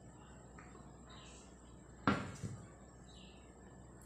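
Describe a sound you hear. A lid clinks against a plate.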